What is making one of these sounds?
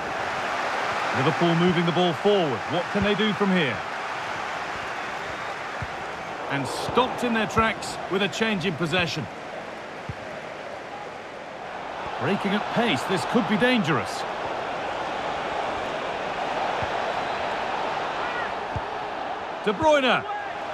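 A large stadium crowd roars and murmurs steadily throughout.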